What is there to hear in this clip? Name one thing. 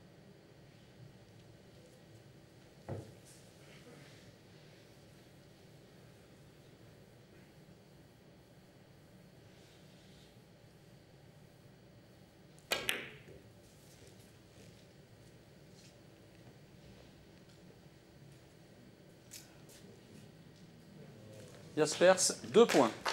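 Billiard balls knock together.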